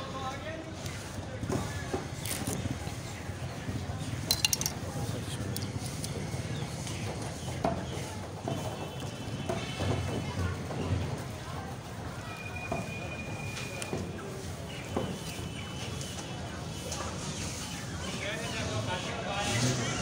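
A knife slices through raw chicken.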